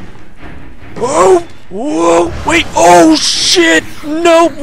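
A young man screams and yells in fright into a microphone.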